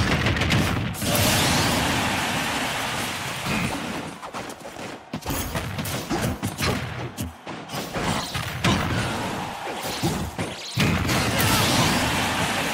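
Game sound effects whoosh and boom as a fighter is knocked out.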